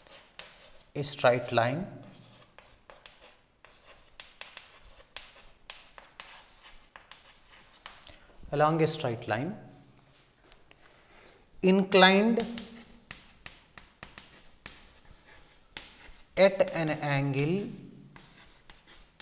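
A man speaks slowly and clearly, as if explaining, with pauses between phrases.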